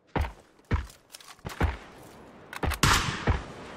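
A rifle is reloaded with metallic clicks and clacks.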